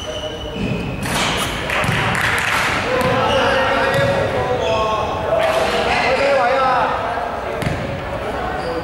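Young men shout and call out to each other across an echoing hall.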